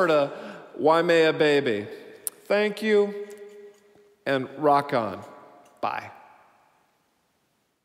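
A man sings close to a microphone.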